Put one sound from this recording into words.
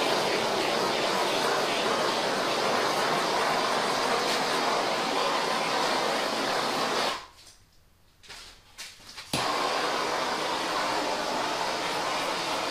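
A handheld power tool blows with a steady, loud roar, then cuts out briefly and starts again.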